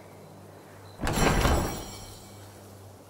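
A heavy chest lid creaks open.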